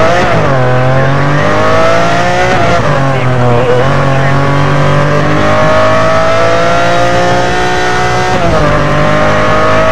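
A sports car engine roars loudly, revving up and dropping as it shifts gears.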